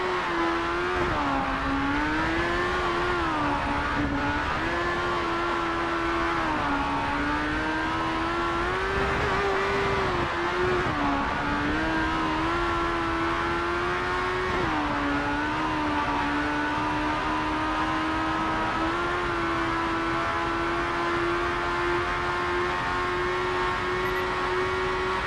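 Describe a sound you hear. A racing car engine roars loudly, its pitch rising and dipping as it speeds up and shifts gears.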